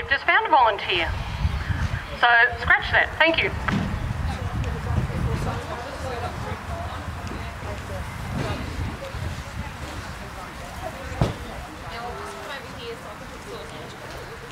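A horse trots with soft hoof thuds on grass.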